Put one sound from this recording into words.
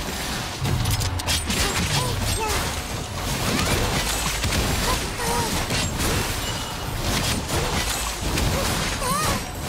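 Loud explosions burst and rumble.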